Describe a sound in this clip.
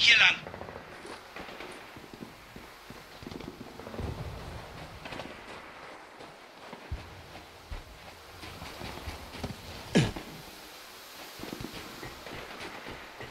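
Heavy boots tread on loose sand.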